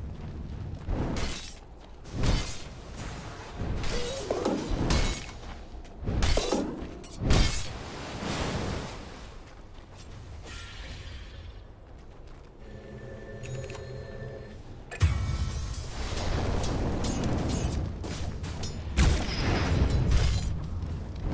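Magic blasts and weapon hits crash in bursts during a fight.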